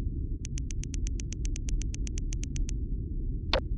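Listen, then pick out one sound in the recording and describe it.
Quick light footsteps tap on a hard floor.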